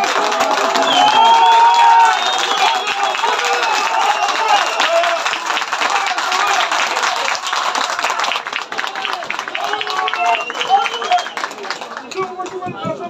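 A crowd of spectators cheers loudly outdoors.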